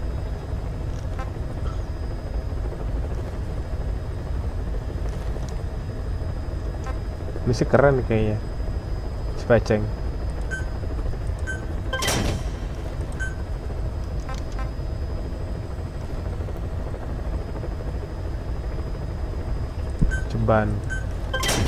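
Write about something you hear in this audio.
Short electronic menu beeps sound as selections change.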